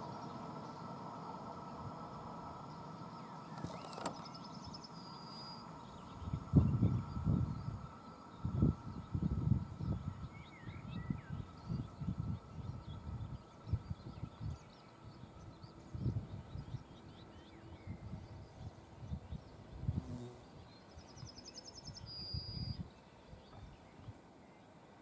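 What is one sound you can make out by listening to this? A train rolls away in the distance and slowly fades.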